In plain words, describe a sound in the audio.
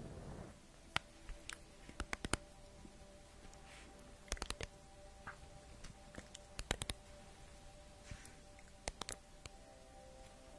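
Cards tap and click sharply close to a microphone.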